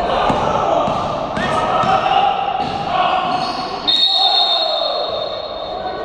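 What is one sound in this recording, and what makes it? Sneakers squeak on a court floor.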